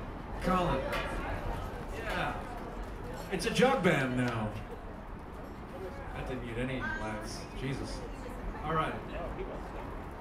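A man talks loudly nearby, outdoors.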